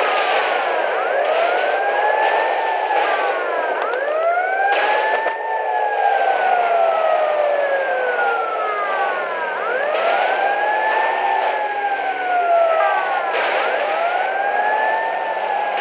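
A police siren wails loudly and close by, rising and falling over and over.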